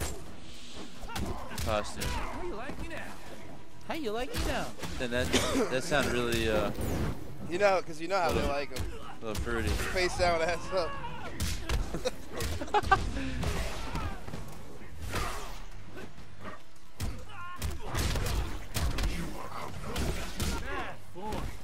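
Heavy punches and kicks land with thuds and cracks.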